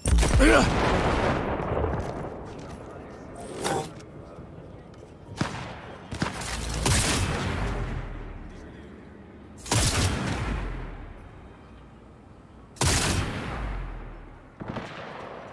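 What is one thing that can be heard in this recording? A rifle fires loud booming shots that echo away.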